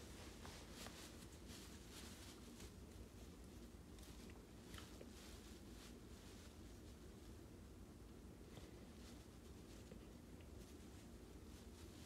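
Fingers rub and rustle against a soft plush toy.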